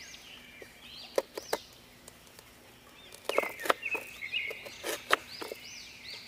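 A knife chops ginger on a cutting board with sharp knocks.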